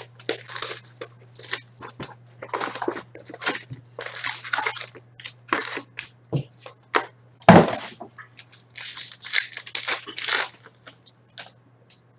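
Foil card packs crinkle and tear as hands open them.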